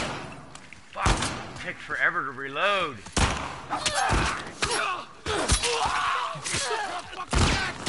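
A man grunts and shouts while struggling.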